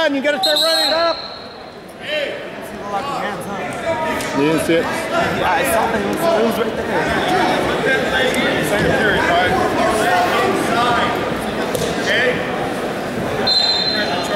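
A crowd of spectators talks and cheers loudly in a large echoing hall.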